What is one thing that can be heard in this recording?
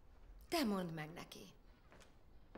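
A young woman speaks with rising emotion.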